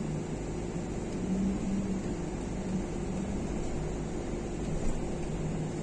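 A vehicle engine hums steadily from inside while rolling along.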